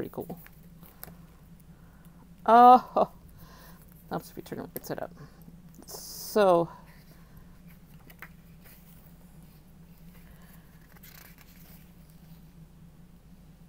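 Paper pages rustle and flip close by.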